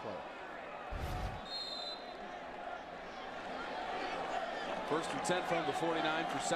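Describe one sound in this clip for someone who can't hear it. A large crowd cheers steadily in an open stadium.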